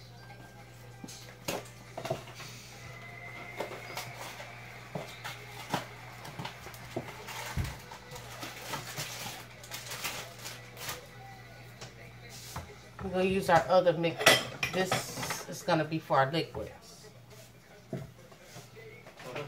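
Dishes and objects clink and knock.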